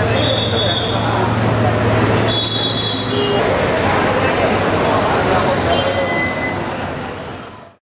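A crowd of men and women talk and murmur close by, outdoors.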